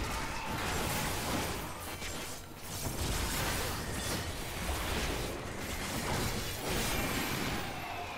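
Magic spells burst and crackle in a game battle.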